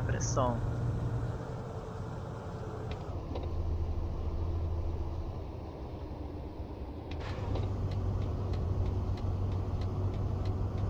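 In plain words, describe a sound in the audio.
A bus engine hums steadily while driving along a road.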